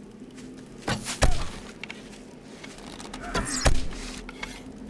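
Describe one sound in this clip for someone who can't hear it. A bowstring twangs as arrows are loosed.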